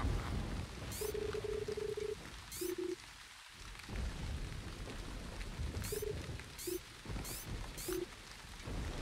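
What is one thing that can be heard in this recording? Short electronic beeps blip in quick runs.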